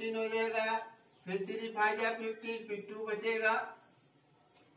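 A man speaks loudly and clearly nearby.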